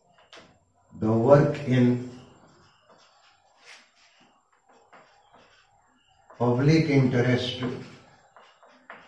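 An elderly man speaks calmly and clearly, close by, as if teaching.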